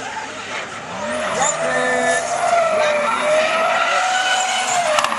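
Tyres screech on tarmac as cars drift through a bend.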